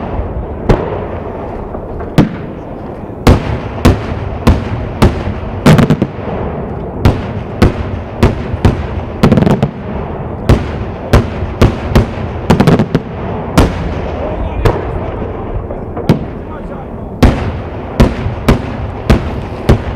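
Fireworks burst with loud bangs overhead, one after another.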